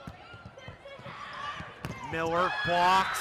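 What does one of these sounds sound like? A crowd cheers in a large echoing arena.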